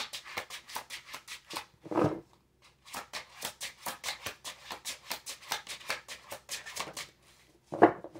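Tarot cards are shuffled with quick, rapid flicks close by.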